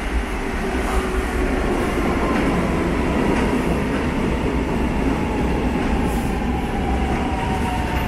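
Train brakes squeal as a subway train slows down.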